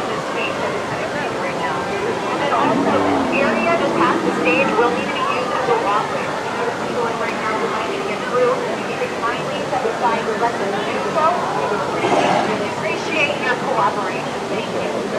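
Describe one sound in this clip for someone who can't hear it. A crowd of men, women and children chatters outdoors nearby.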